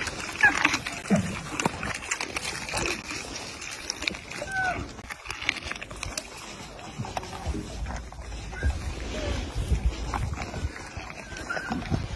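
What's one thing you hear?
A camel chews loudly close by.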